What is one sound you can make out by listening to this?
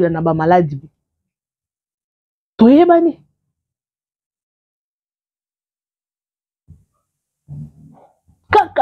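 A woman speaks calmly and close to a microphone, in short bursts with long pauses.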